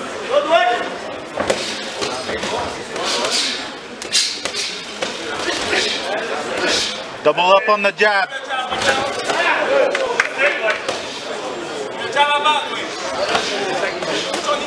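Boxing gloves thud against a body in quick punches.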